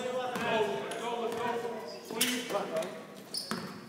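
Spectators talk nearby in a large echoing gym.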